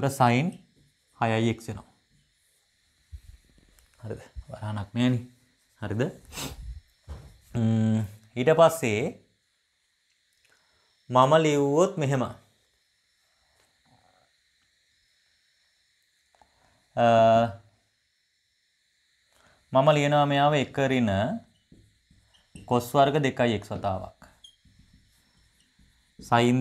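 A young man speaks calmly and clearly, close by, in short bursts with pauses.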